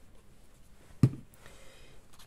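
A plastic glue bottle is set down on a table with a light knock.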